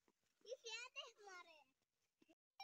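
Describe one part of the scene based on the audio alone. A young child talks in a high voice nearby.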